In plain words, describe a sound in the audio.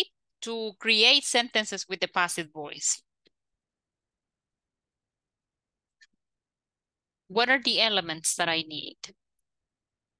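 A woman speaks calmly through an online call, in two short bursts.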